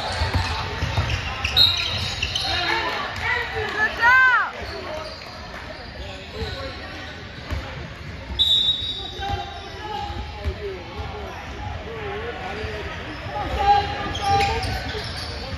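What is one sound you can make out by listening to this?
A basketball bounces on a hard court in an echoing gym.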